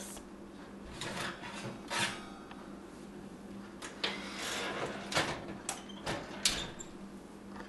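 A metal baking tray scrapes and clatters on an oven rack.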